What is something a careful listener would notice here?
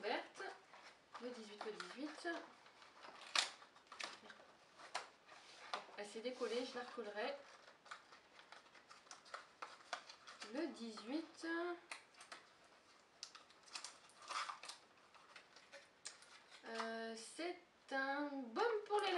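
Paper and cardboard rustle and tap as a box is handled.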